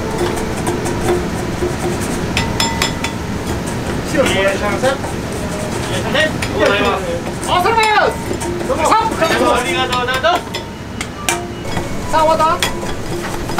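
Metal pots and strainers clatter and knock.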